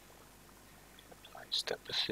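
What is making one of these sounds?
A young man speaks briefly and close to a headset microphone.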